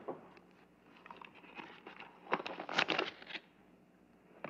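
Paper rustles as it is handled.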